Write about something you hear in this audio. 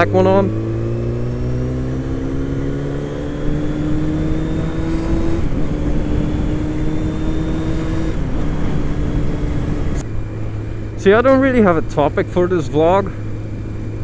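A motorcycle engine hums steadily, rising in pitch and dropping briefly at each gear change.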